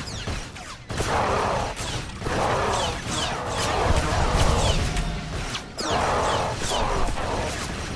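Energy blasts whoosh and crackle.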